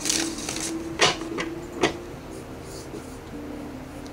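A hand shifts and taps lightly on a tabletop.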